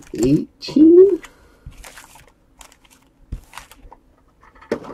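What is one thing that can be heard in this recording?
Foil card packs rustle and crinkle as hands set them down.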